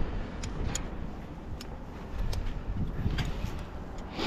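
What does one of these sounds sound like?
Metal climbing clips clink against a rope.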